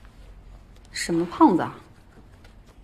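A young woman asks a short question quietly.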